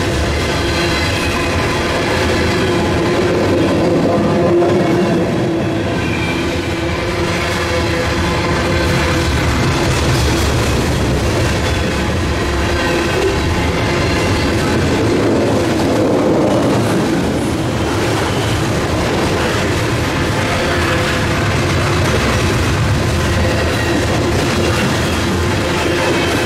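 Steel wheels squeal and clatter on the rails.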